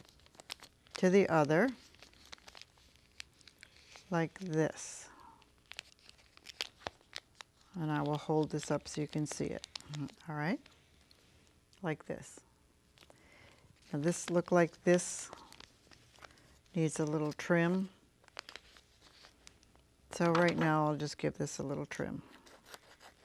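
An older woman speaks calmly into a close microphone, in short phrases.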